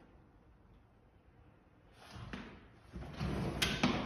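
A window slides open.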